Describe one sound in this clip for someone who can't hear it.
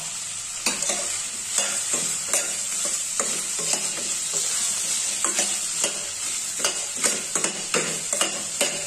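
A metal spoon scrapes and clinks against a steel pan while stirring.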